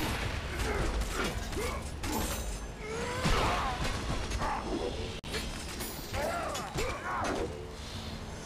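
Blades whoosh and slash rapidly in a fight.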